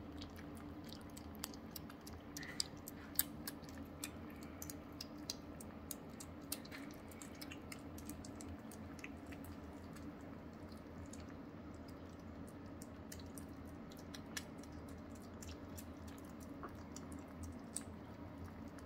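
Kittens lap and chew food from bowls with soft wet clicks.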